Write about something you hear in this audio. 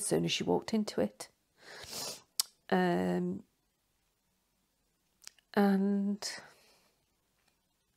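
A middle-aged woman speaks close to a microphone, emotionally, with long pauses.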